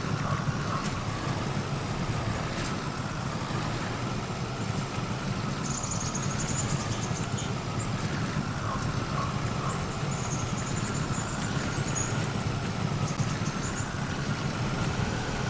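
A truck engine rumbles steadily as it crawls along.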